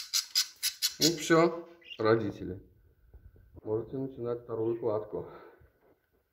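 A budgie chirps and warbles close by.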